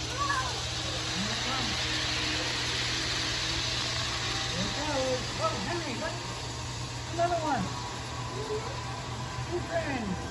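A model train rumbles along its track.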